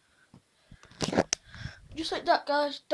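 A young boy talks loudly, very close to the microphone.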